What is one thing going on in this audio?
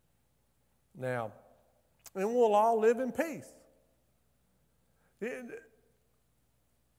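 A middle-aged man speaks slowly and expressively through a microphone in a reverberant hall, with long pauses.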